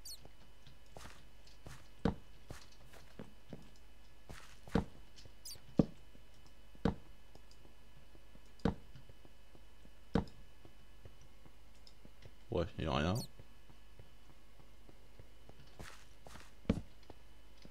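Footsteps tap on stone at an unhurried pace.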